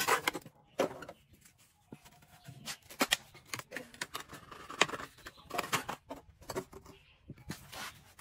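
Concrete blocks scrape and clack as they are set down on concrete.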